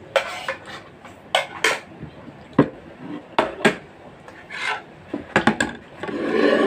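Plates and cups clatter on a table.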